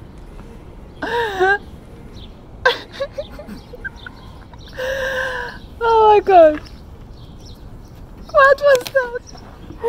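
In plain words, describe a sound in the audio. A young woman talks and laughs with animation close by.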